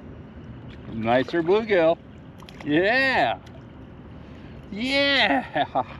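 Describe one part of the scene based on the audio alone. A fish splashes in the water near a kayak.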